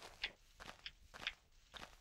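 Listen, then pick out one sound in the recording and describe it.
A leafy block crunches as it breaks.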